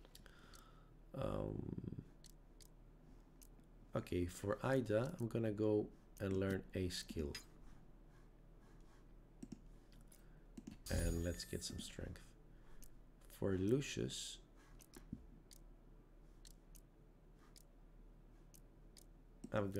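Soft menu clicks and chimes sound now and then.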